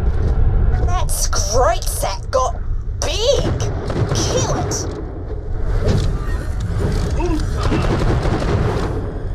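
A creature growls and shrieks.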